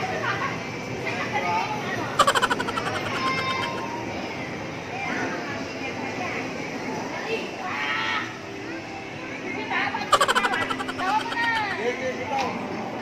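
Electronic arcade game sounds and jingles play loudly.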